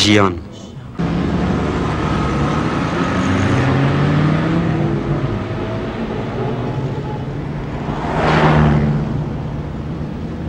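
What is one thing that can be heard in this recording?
Cars drive past on a busy street.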